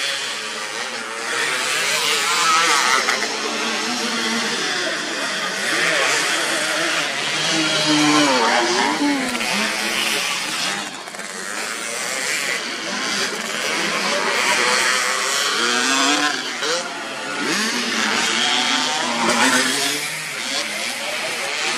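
Tyres churn through loose mud.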